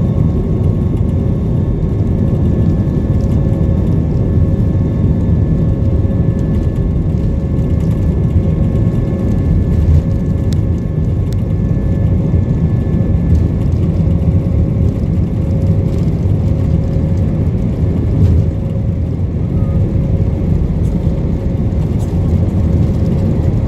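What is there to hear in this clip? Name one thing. Wheels rumble over the runway.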